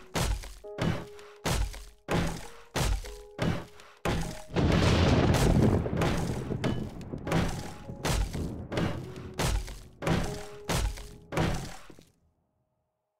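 A hammer strikes metal in quick, regular blows.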